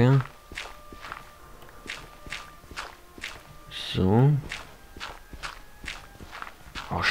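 A shovel digs into dirt with repeated scraping crunches.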